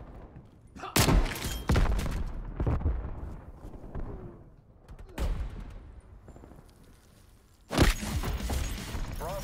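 A wooden bat strikes hard with heavy thuds.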